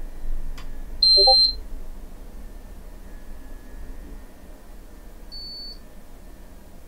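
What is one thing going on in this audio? An electronic alert device beeps in short, high tones.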